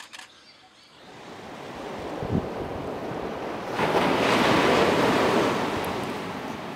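Ocean waves crash against rocks and wash over them.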